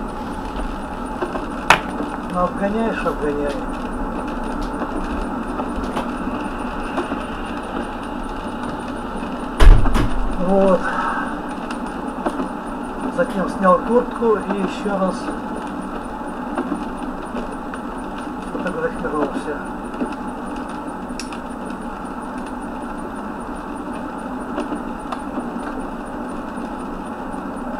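Tyres hum steadily on a wet road from inside a moving car.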